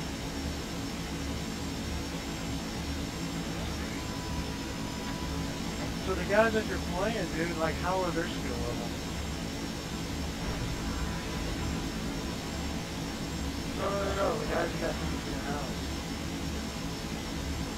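A low engine rumble drones inside a cockpit.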